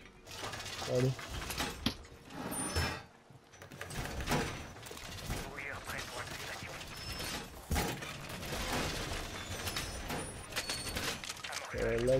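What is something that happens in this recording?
Heavy metal panels clank and slam into place.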